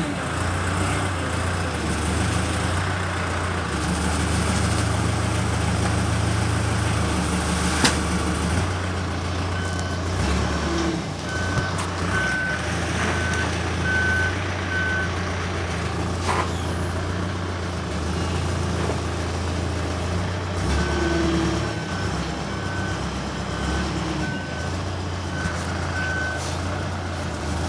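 A tractor engine runs steadily close by.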